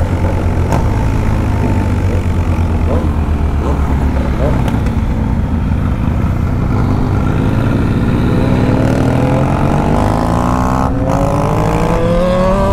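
A motorcycle engine rumbles steadily and then revs higher as the bike speeds up.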